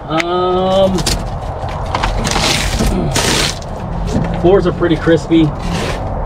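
Loose metal and wood parts rattle and clatter as hands rummage through debris.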